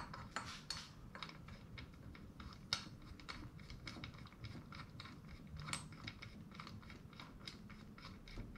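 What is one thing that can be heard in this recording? Small metal parts clink and click.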